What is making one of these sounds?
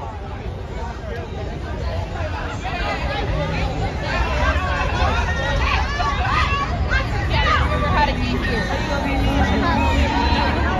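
A crowd of people talk and shout outdoors.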